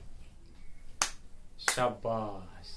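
A girl claps her hands.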